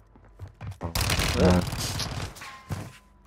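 Gunshots fire in short, loud bursts.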